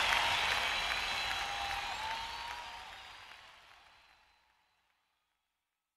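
An acoustic guitar is strummed, then fades away.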